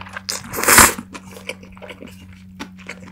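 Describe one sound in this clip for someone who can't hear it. A young woman chews wetly and smacks her lips, close to a microphone.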